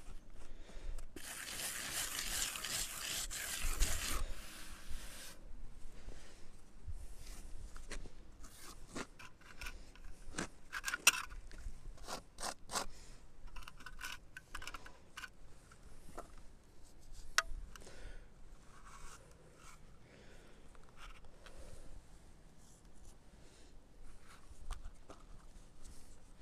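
A trowel scrapes across wet cement.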